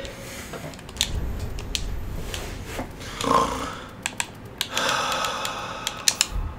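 Short menu clicks tick several times.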